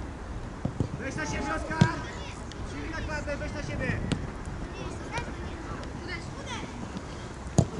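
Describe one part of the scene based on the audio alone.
Children shout across an outdoor field.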